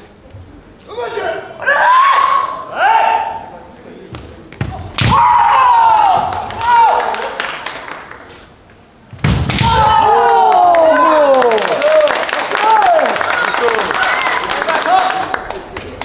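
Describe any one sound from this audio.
Fencers shout loud, drawn-out cries that echo through a large hall.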